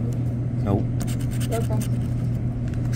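A coin scratches in quick, rough bursts across a card.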